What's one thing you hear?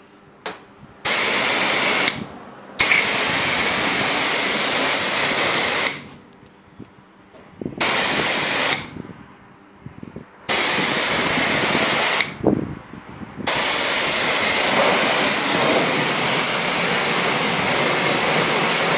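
A pressure washer jet hisses loudly against a car's body in bursts.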